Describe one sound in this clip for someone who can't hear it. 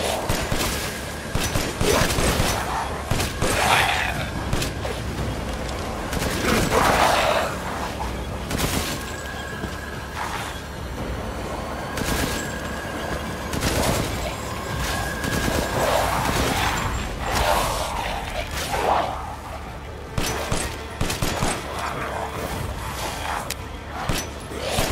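Gunshots ring out again and again.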